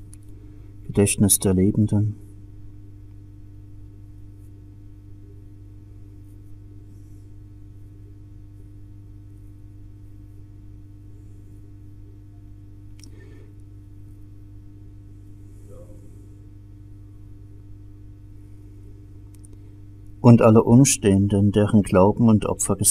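An elderly man chants in a low voice.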